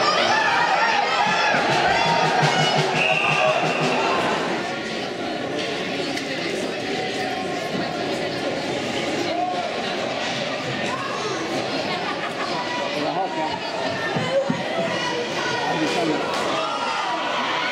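Hockey sticks clack against a puck on ice.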